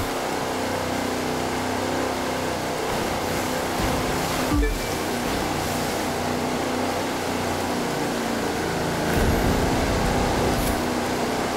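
Water splashes and hisses against a speeding boat's hull.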